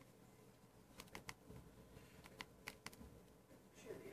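Phone keys click softly as they are pressed.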